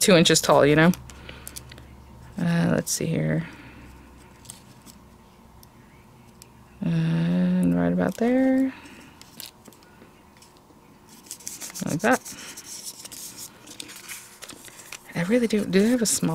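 Paper rustles softly as hands handle it.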